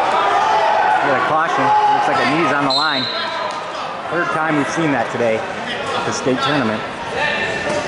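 Men shout loudly from a crowd.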